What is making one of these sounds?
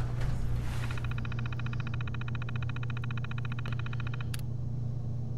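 A computer terminal clicks rapidly as text prints out.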